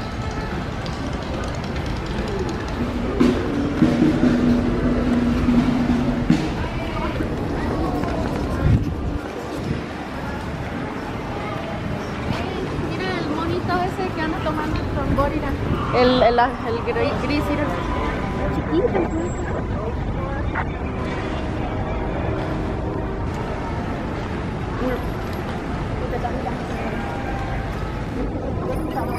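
A crowd murmurs and chatters outdoors at night.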